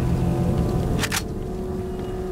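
A heavy thump and crash of breaking wood.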